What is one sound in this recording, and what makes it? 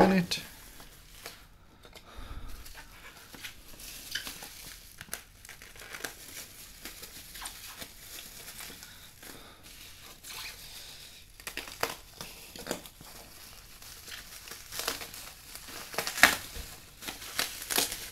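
Bubble wrap crinkles and rustles as hands handle it.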